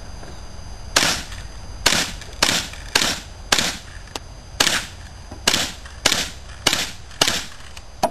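A pistol fires a quick series of shots outdoors.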